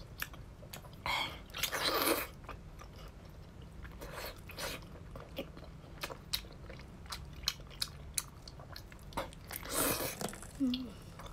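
A woman slurps and sucks loudly close to a microphone.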